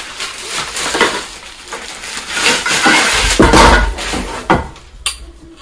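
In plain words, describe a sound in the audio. Plastic wrapping rustles and crinkles loudly as a man pulls it apart.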